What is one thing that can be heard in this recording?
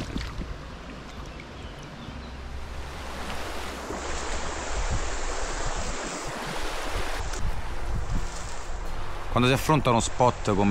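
A shallow stream trickles and babbles over stones.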